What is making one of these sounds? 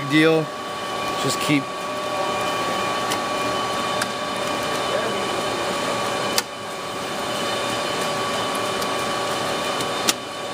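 Plastic wire connectors click and rattle.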